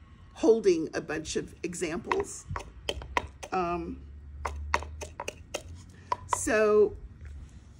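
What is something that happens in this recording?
An elderly woman speaks with animation close by.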